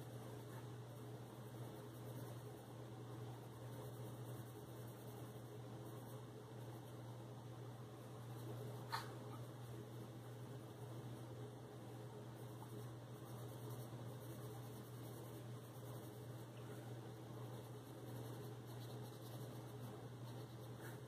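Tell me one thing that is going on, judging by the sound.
A colored pencil scratches softly across paper.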